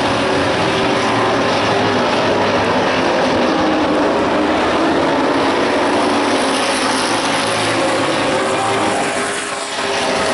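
A race car engine roars loudly as the car speeds by.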